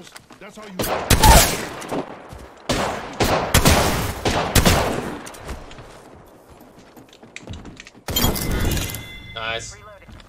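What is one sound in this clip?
Single gunshots crack now and then.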